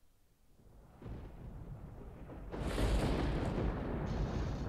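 Electricity crackles and thunder rumbles.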